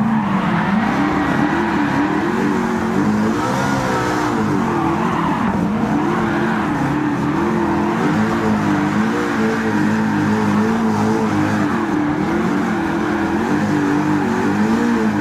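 A car engine roars loudly, revving up and down through the gears.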